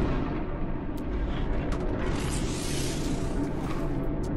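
Short electronic clicks sound from an interface.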